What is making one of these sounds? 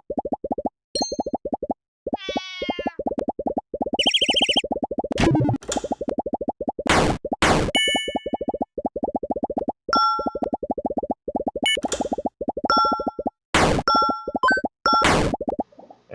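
Short chime tones ring out between lines of game dialogue.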